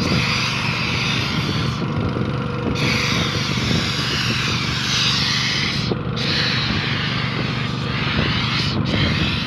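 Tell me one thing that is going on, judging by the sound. A paint sprayer hisses steadily, with short breaks.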